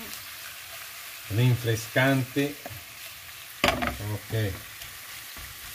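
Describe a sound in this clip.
A wooden spatula stirs and scrapes vegetables in a pan.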